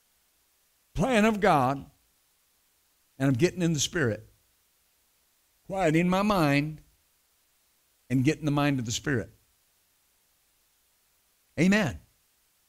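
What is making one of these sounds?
A middle-aged man speaks with animation through a microphone, in short phrases with pauses.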